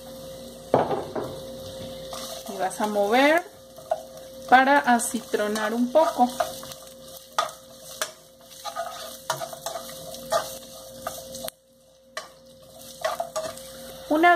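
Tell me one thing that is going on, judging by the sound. A spatula scrapes and stirs onions in a pan.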